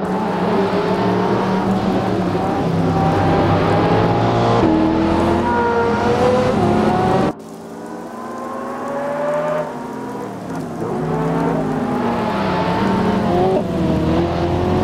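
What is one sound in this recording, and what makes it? Sports car engines roar loudly, revving up and down as the cars race past.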